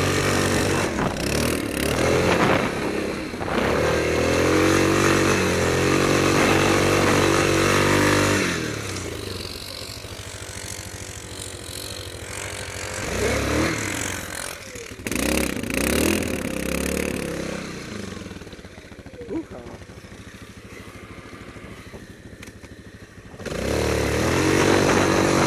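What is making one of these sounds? A single-cylinder quad bike engine revs hard, then drops back and revs again.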